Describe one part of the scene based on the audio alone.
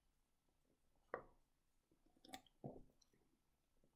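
A man sips from a can and swallows.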